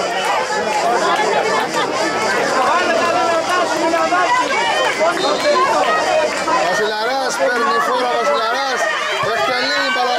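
Several men shout and call to each other across an open outdoor pitch.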